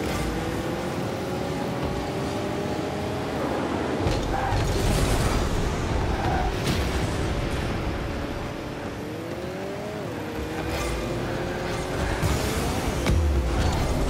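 A video game car's engine hums and rises in pitch.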